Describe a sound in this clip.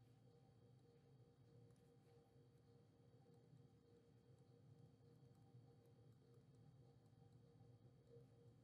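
A stylus taps and scratches lightly on a tablet.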